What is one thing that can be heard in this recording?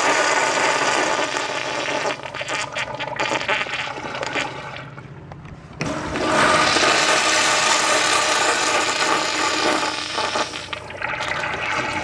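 Liquid splashes steadily into a urinal.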